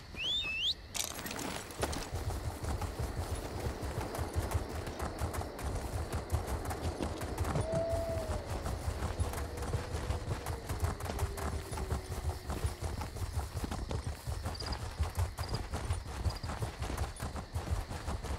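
A horse gallops steadily with quick, thudding hoofbeats.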